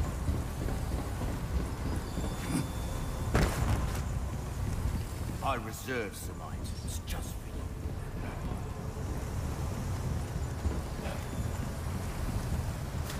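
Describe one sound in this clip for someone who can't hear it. Footsteps thud on metal walkways and floors.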